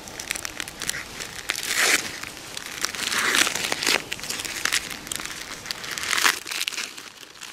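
A plastic wrapper crinkles and rustles close by.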